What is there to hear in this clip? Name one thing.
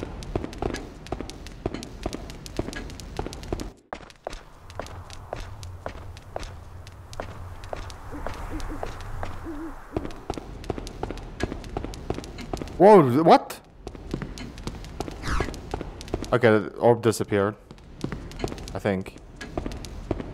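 Quick footsteps tap on a hard stone floor.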